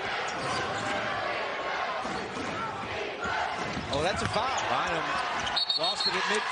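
A large indoor crowd murmurs and cheers steadily in an echoing arena.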